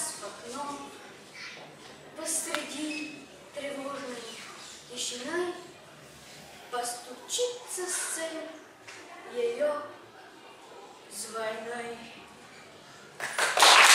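A boy recites loudly and clearly.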